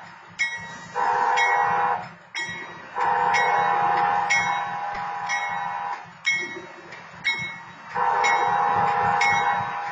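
A train horn blares in long, loud blasts nearby.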